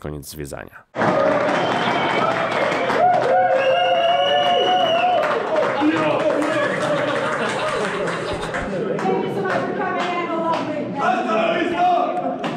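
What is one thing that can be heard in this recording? A group of men talk loudly over one another in an echoing vault.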